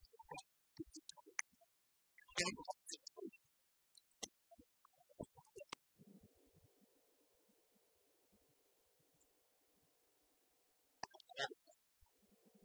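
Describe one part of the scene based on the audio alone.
Keys clatter on laptop keyboards.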